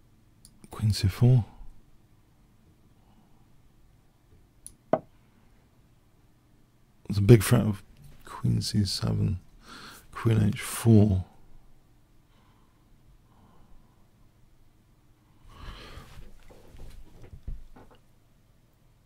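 An older man speaks in short, thoughtful bursts close to a microphone.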